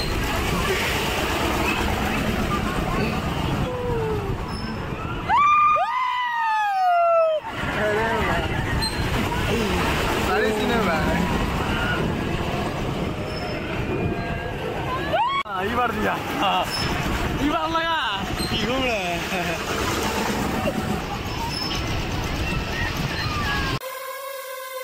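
A large crowd chatters outdoors.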